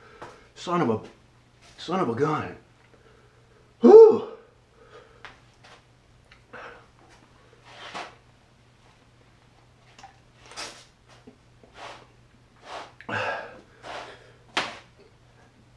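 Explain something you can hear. A man talks close by in short, animated bursts.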